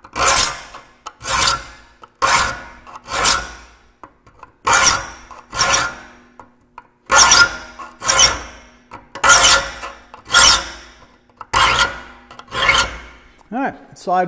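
A metal file rasps sharply in repeated strokes across saw teeth.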